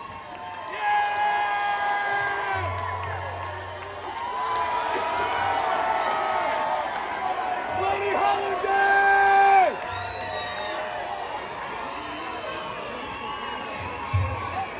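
An electric guitar plays loudly.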